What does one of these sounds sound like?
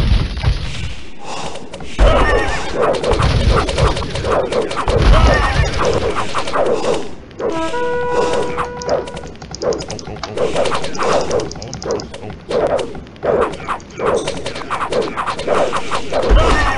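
Weapons clash and clang in a busy battle.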